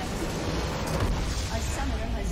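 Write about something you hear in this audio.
A deep explosion booms.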